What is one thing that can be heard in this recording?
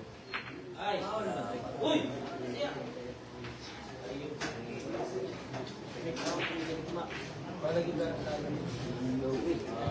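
A crowd of people chatter in a large echoing room.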